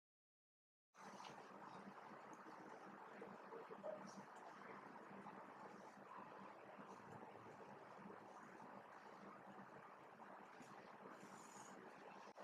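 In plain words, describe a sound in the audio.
A marker squeaks faintly across a whiteboard.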